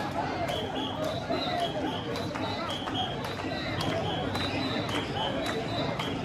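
A large crowd of men chants loudly in a steady rhythm.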